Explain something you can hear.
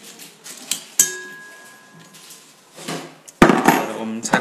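Metal parts clink and scrape inside a steel bowl.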